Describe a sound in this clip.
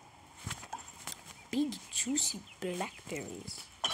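A young boy speaks briefly and casually, close to a microphone.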